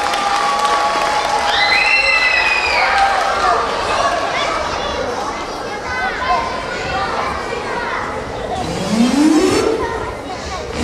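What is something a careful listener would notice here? Music plays through loudspeakers in a large hall.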